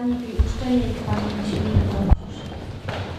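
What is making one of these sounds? A woman speaks calmly into a microphone in an echoing hall.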